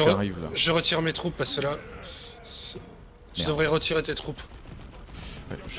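Gunfire crackles in a battle.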